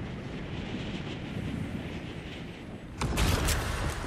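Wind rushes past steadily while gliding.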